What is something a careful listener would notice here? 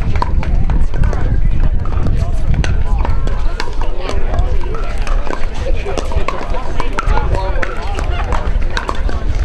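Men and women chatter and talk nearby outdoors.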